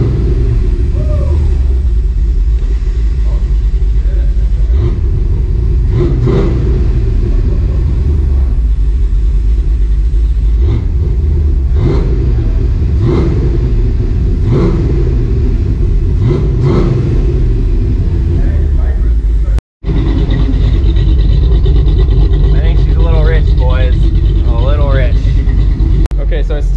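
A car engine idles with a loud, deep rumble.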